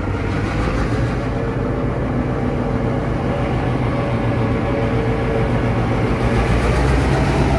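A diesel locomotive engine rumbles loudly close by as a train pulls in.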